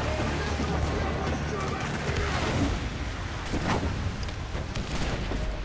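Waves wash against a wooden ship's hull.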